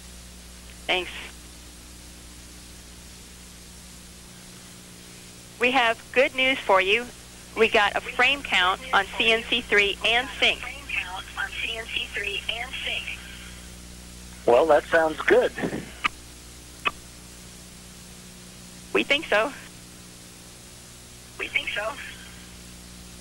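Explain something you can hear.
A man speaks in short bursts over a crackly radio link.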